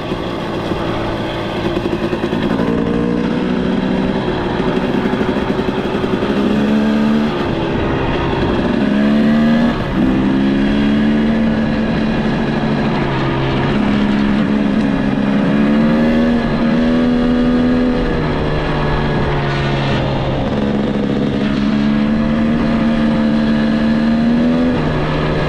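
Tyres crunch over a gravel track.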